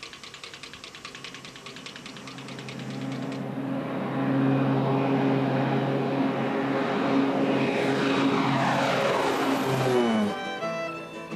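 A twin-propeller plane drones loudly as it approaches and roars overhead, its pitch dropping as it passes.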